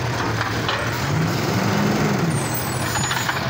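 A hydraulic arm whines as it lifts a bin.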